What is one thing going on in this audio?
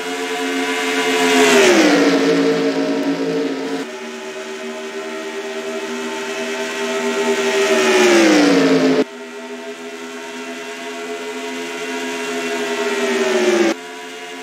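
Race cars whoosh past one after another, their engine pitch dropping as they go by.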